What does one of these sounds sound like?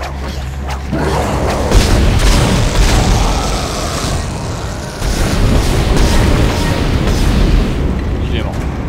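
Weapon fire blasts and crackles loudly.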